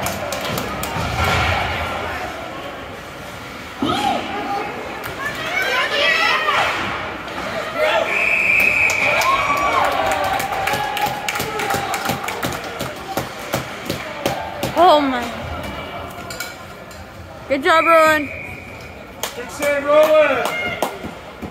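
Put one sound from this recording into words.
Hockey sticks clack against a puck and the boards.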